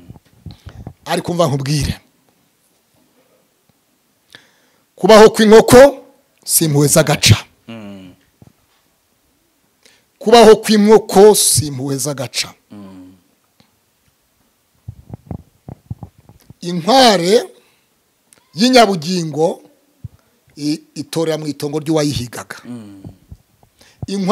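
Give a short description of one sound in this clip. A man speaks with animation into a microphone close by, pausing between phrases.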